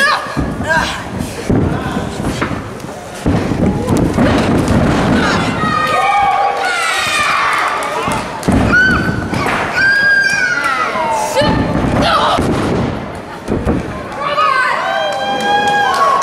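Young women shout and yell with effort.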